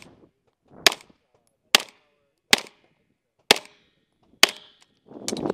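A pistol fires sharp shots, one after another, outdoors.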